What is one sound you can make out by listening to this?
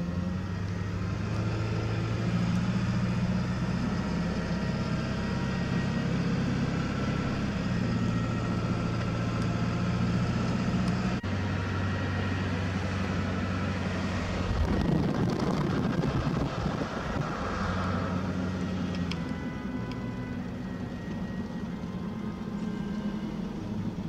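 A car engine hums steadily, shifting in pitch as the car climbs and turns.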